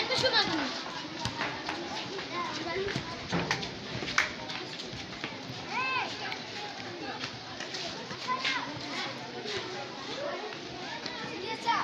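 Many children shout and call out across a wide open field outdoors.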